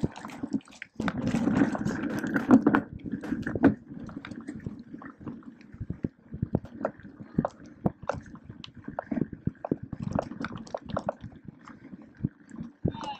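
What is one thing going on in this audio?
A bicycle chain and frame clatter over bumps.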